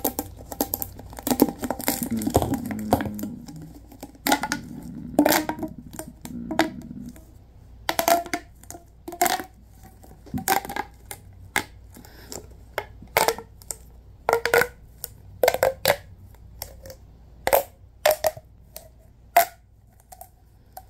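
A plastic tube crackles and pops as it is stretched and squeezed, close up.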